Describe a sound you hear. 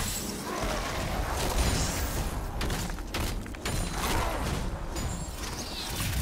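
Game spell effects crackle and burst in a fast fight.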